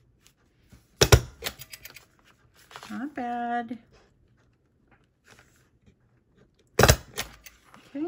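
A desktop stapler snaps shut, driving a staple through a stack of paper.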